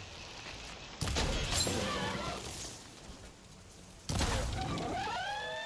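An arrow whooshes away from a bow.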